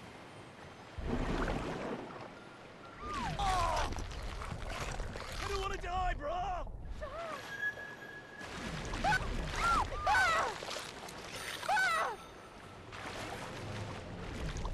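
Water splashes loudly as a shark dives in and leaps out.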